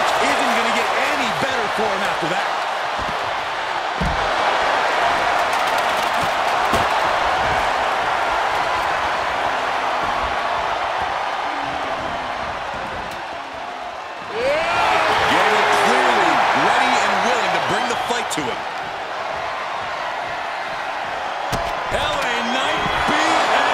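A large crowd cheers and roars loudly throughout.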